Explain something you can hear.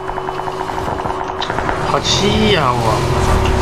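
A motorcycle engine rumbles and revs up.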